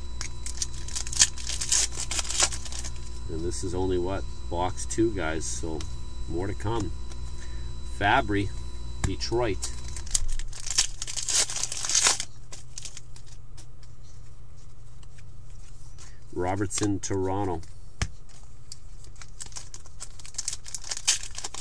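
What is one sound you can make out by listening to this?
Trading cards rustle and flick between hands.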